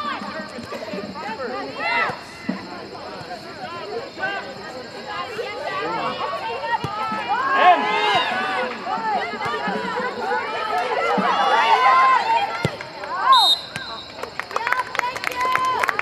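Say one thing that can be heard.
Young women shout and call out to each other outdoors.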